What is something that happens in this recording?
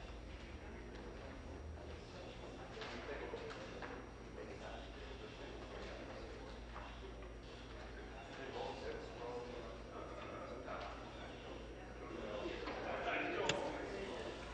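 Many people murmur and talk quietly in a large echoing hall.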